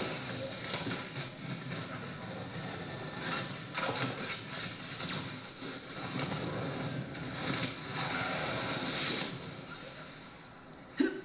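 Rocket thrusters roar and whoosh as a flying robot swoops through the air.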